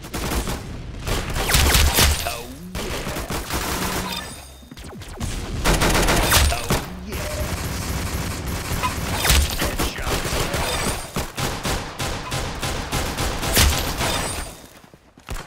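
Guns fire in rapid bursts, with sharp bangs and booms.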